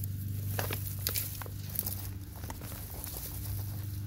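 Loose soil falls and patters onto earth.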